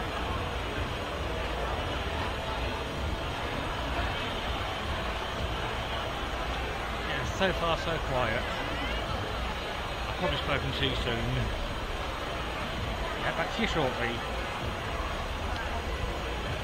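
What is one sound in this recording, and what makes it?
A crowd of young people chatters and calls out at a distance outdoors.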